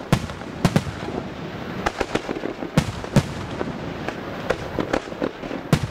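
Fireworks crackle and sizzle.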